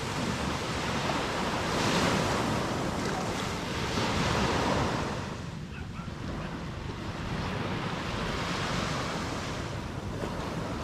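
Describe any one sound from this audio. Waves break and wash onto a beach.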